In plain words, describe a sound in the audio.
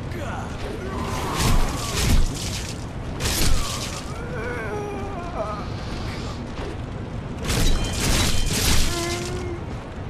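Sword blows clang and slash.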